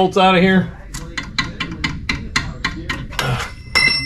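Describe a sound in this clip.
A metal tool clicks and taps.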